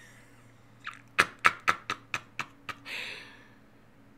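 A young man laughs loudly into a microphone.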